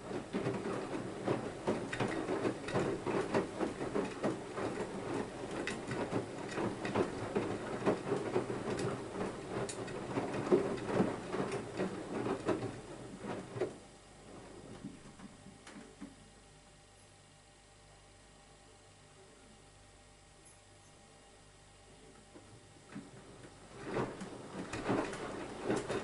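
A washing machine motor hums steadily.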